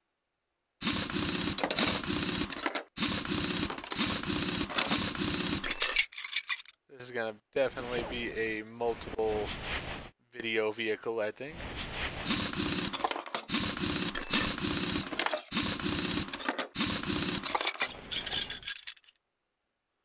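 An impact wrench whirs and rattles in short bursts as it unscrews bolts.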